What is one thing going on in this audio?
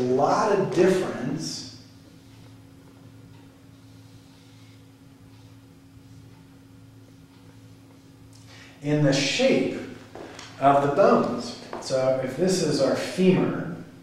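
A middle-aged man speaks calmly, as if explaining.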